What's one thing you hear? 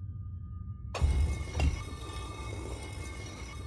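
A heavy stone block grinds as it slides open.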